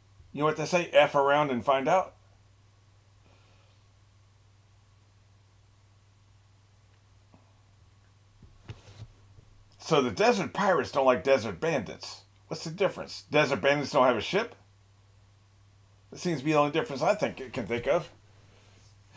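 An older man talks with animation, close by, through a microphone.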